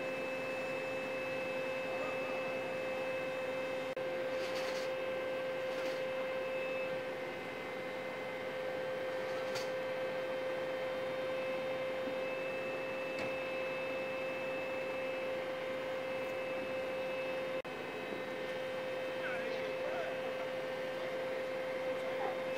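A fire engine idles with a steady low hum.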